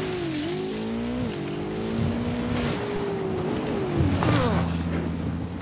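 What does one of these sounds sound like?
A motorbike engine revs and whines, rising and falling in pitch.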